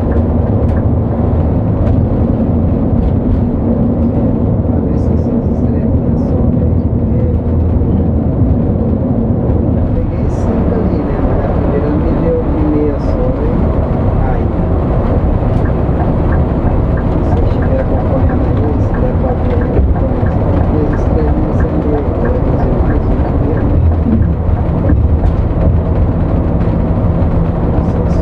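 Tyres roar steadily on a road.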